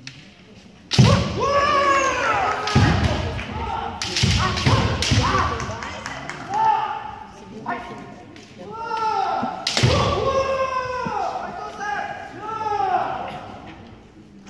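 Fighters shout loud, drawn-out battle cries that echo in a large hall.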